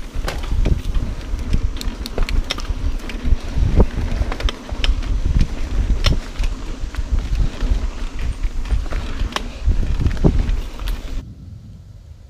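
Wind rumbles loudly past a fast-moving rider.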